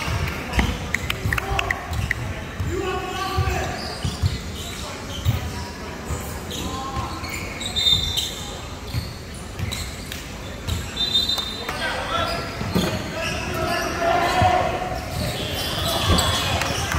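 Young players shout and call out across the hall.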